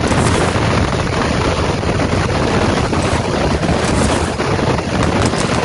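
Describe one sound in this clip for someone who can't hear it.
Wind rushes loudly during a fast fall through the air.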